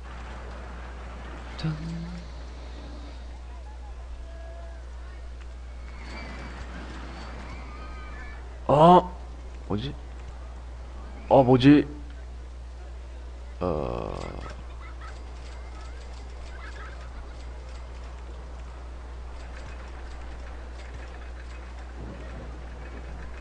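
Short electronic chimes and clicks sound as track pieces are placed.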